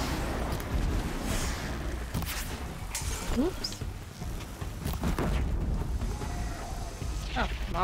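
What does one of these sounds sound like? Mechanical creatures screech and clank nearby.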